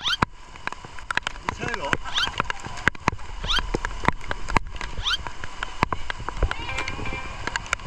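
Water rushes down a slide.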